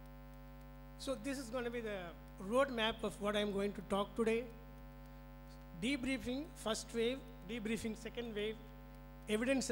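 A man speaks calmly through a microphone and loudspeakers.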